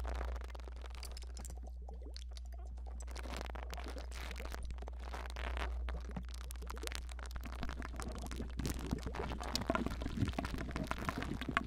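Hands rub and brush softly close to a microphone.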